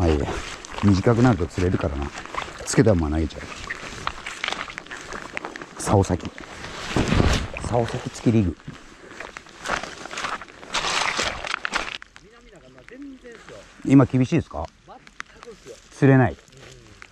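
A man talks calmly, close to the microphone.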